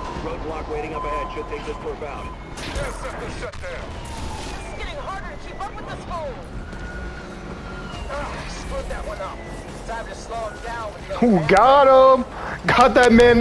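Police sirens wail behind.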